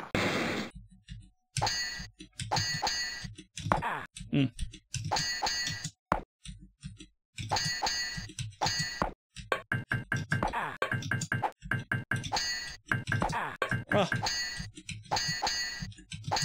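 Swords clash with short metallic clinks in a game.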